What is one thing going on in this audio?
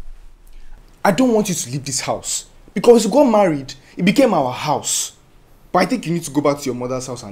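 A young man speaks with animation nearby.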